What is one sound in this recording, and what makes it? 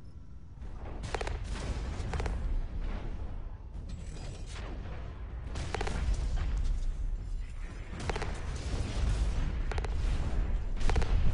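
Guns fire in short, sharp bursts.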